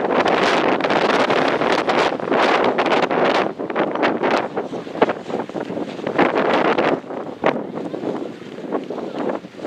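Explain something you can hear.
Wind gusts loudly across an open field.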